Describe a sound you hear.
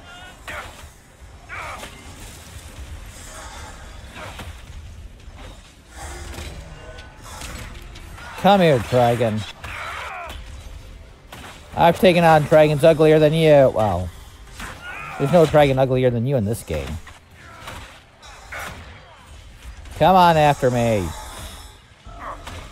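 Magic blasts crackle and whoosh in a battle.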